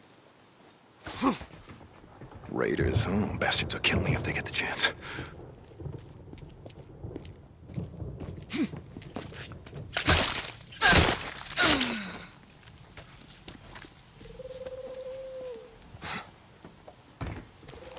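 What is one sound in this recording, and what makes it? Boots thump on the wooden bed of a truck.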